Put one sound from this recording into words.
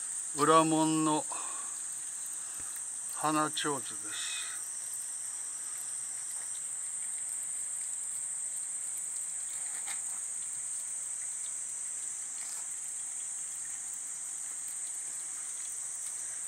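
Water trickles steadily from a spout into a stone basin.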